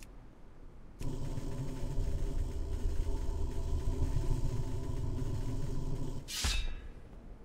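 A bow is drawn back.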